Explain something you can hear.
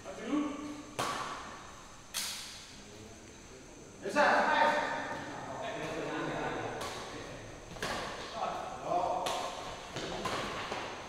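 Badminton rackets strike a shuttlecock in an echoing hall.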